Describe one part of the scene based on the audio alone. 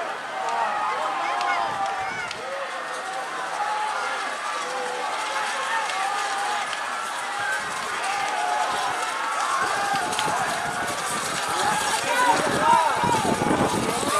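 A large outdoor crowd cheers and shouts with excitement.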